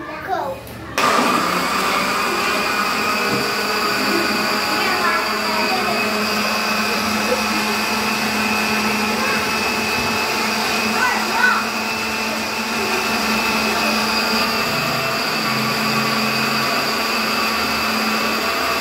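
A blender motor hums steadily.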